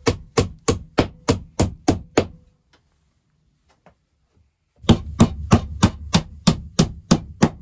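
A hammer strikes wood in quick, even blows.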